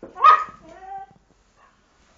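A dog whines briefly.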